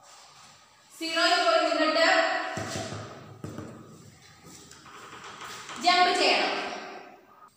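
A woman speaks clearly and calmly, close by, in a slightly echoing room.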